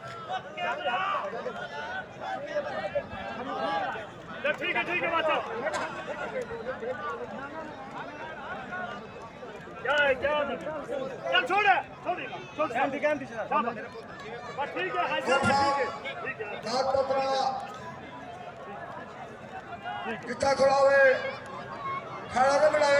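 A large crowd murmurs in the background outdoors.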